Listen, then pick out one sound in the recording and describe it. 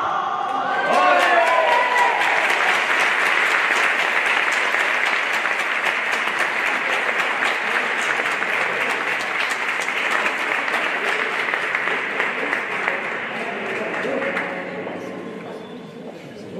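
A crowd applauds loudly in a large echoing hall, then the clapping fades.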